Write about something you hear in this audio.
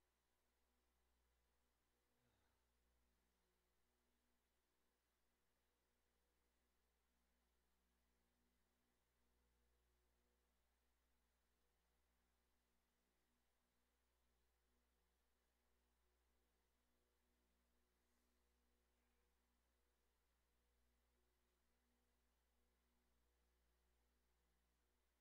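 An indoor bike trainer whirs steadily.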